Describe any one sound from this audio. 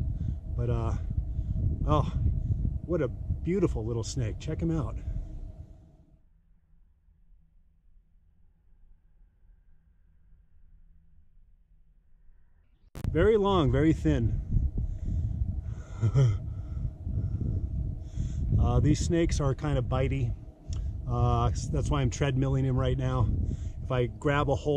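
A man talks with animation, close to the microphone.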